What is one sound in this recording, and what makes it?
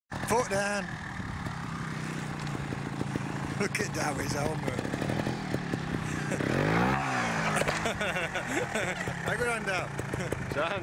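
A motorcycle engine idles and revs close by.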